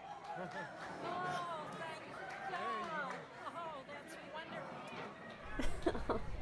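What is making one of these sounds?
A crowd chatters in the background.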